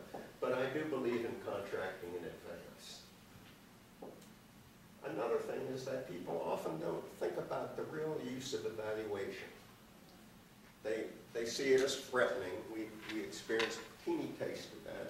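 A middle-aged man speaks calmly to an audience through a microphone in a large room.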